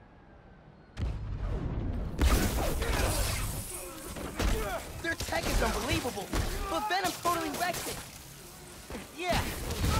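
Heavy blows and crackling blasts thump in a fast fight.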